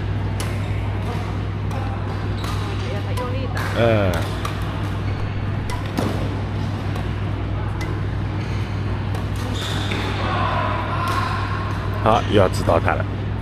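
Shuttlecocks are struck with sharp pops by rackets in a large echoing hall.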